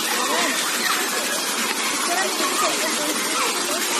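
A stream trickles and splashes over rocks.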